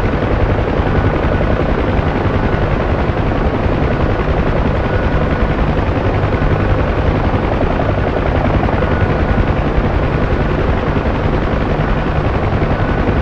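A helicopter's rotor thumps steadily and loudly.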